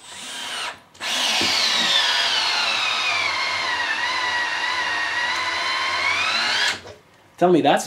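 A cordless drill whirs steadily as it bores into wood, then stops.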